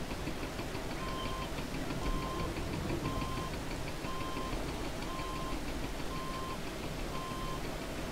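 A reversing alarm beeps at an even pace.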